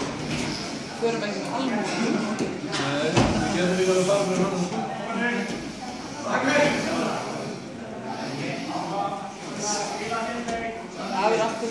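Children and adults chatter throughout a large echoing hall.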